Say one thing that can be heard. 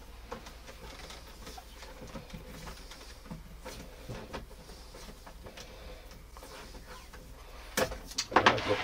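Plastic plugs and cables click and rattle as they are handled.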